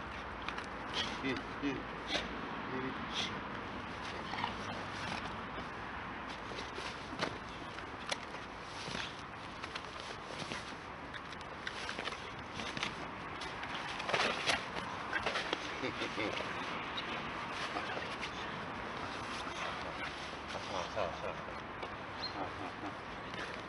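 A dog yelps and barks excitedly nearby.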